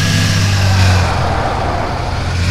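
A car engine drops back to idle.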